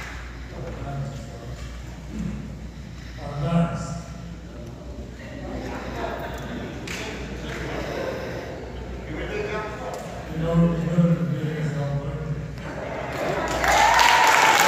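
An elderly man speaks calmly through a microphone in a large echoing hall.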